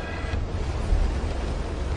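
A dust storm roars.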